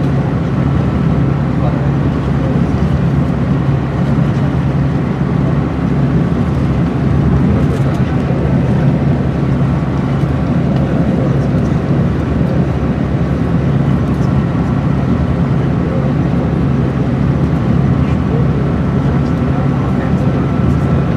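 Tyres roar on the road beneath a moving bus.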